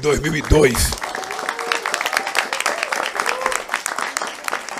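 A crowd claps and cheers in a large hall.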